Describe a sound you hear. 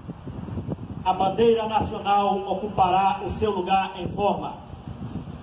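A man calls out commands loudly over a loudspeaker outdoors.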